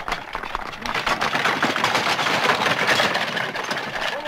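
Wooden cart wheels rattle over cobblestones.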